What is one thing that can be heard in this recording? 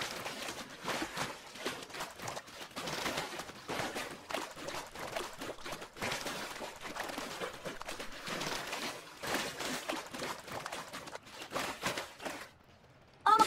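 Water splashes as a swimmer paddles along.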